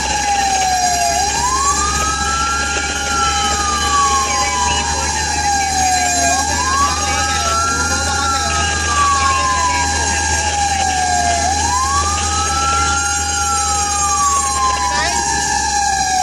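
A vehicle engine hums steadily while driving.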